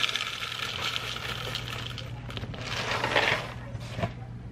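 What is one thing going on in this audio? Dry cereal pours and rattles into a plastic bowl.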